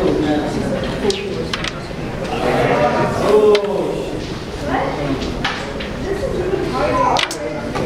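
A carrom striker clicks sharply against wooden pieces on a board.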